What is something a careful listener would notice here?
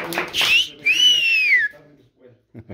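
Young girls squeal shrilly nearby.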